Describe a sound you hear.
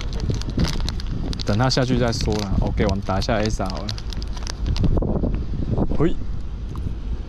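A plastic packet crinkles and rustles in hands close by.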